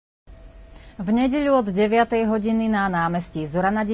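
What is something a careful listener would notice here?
A middle-aged woman speaks calmly and clearly into a microphone.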